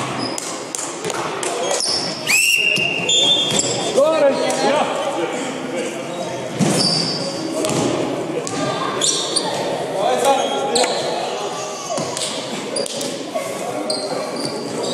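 Men talk and call out in a large echoing hall.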